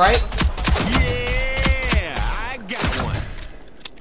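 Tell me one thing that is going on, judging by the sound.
A pistol fires several quick shots.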